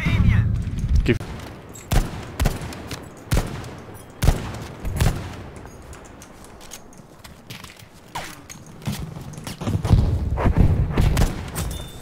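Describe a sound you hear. Rifle shots crack sharply, one at a time.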